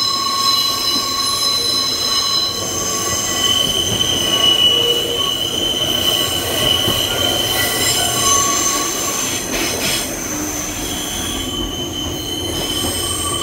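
An electric train rumbles along the track, heard through an open doorway.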